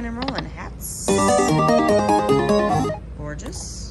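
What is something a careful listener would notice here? A slot machine plays a short, loud win jingle.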